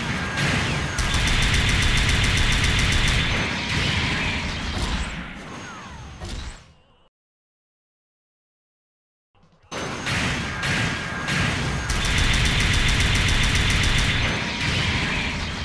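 Metal clashes loudly as robots strike each other.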